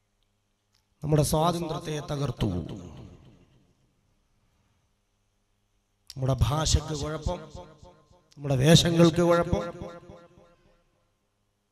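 A man speaks forcefully into a microphone, heard over a loudspeaker with a slight echo, in bursts with pauses.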